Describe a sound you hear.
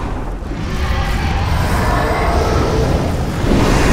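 A monstrous creature roars loudly.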